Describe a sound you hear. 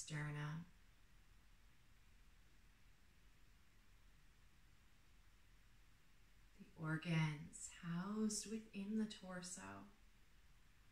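A woman speaks calmly and softly, with long pauses.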